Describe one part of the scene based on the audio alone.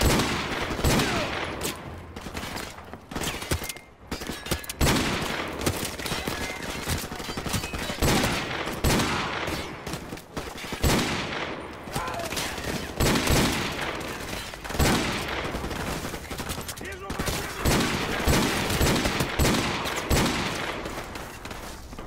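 Gunshots crack repeatedly, echoing off hard walls.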